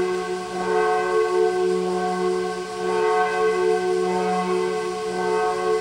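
A large congregation sings a slow hymn together, echoing through a large hall.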